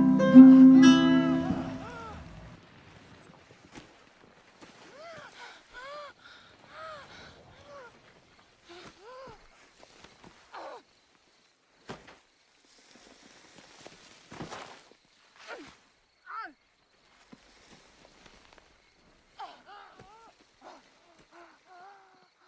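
Loose soil shifts and crumbles.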